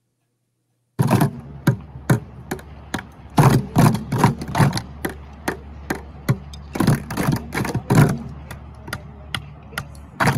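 Students drum rapidly on plastic buckets.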